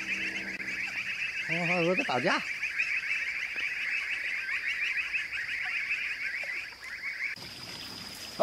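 A flock of ducks quacks and chatters on the water.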